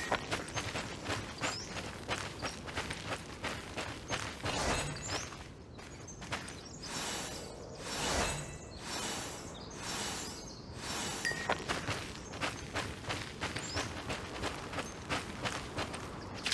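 Footsteps tread steadily along a dirt path.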